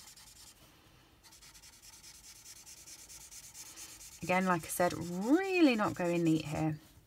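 A felt-tip marker taps softly on paper.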